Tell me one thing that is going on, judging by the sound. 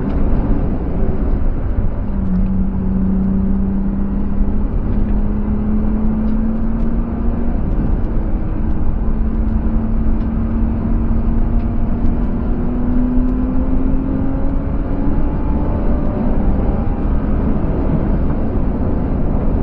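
Tyres and wind rumble loudly inside the car.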